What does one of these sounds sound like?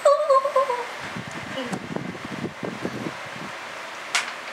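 A young woman laughs softly close by.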